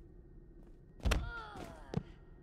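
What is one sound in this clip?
A body slams onto a hard floor with a heavy thud.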